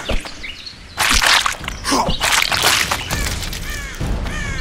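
A large carnivorous plant snaps and thrashes with heavy crunching thuds.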